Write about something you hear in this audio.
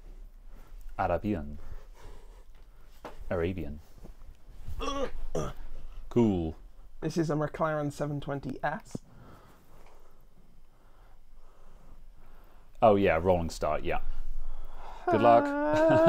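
A man talks calmly into a microphone, with pauses.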